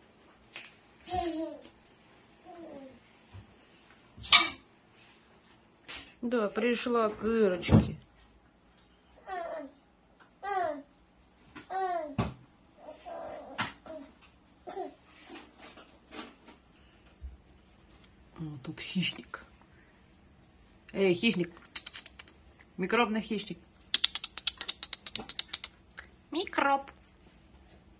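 A small puppy whimpers and yelps.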